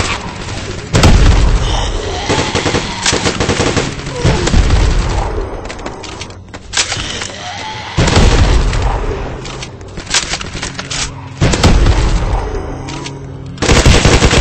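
Rockets explode with deep, heavy booms.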